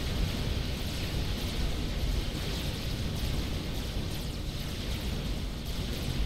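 Small guns fire in rapid bursts during a battle.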